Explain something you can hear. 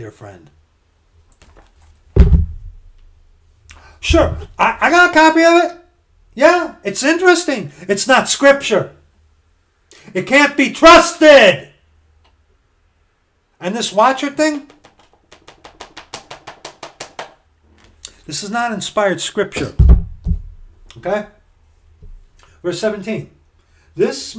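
A middle-aged man talks with animation close to a microphone, in bursts with pauses.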